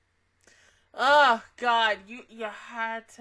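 A young woman laughs loudly close to a microphone.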